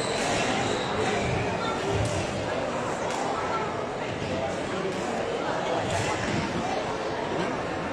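A squash ball smacks against the walls in a large echoing court.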